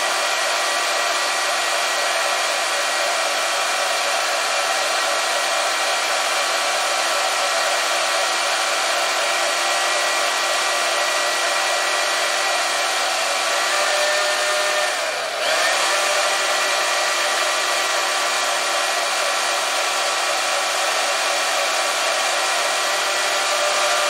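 A band saw motor runs with a steady, whining hum.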